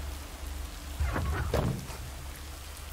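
A truck door slides shut with a clunk.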